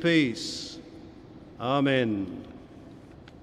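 An elderly man speaks through a microphone in a large echoing hall.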